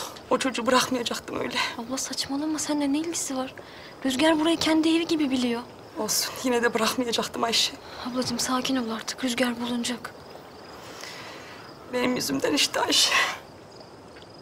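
A woman speaks tearfully and upset, close by.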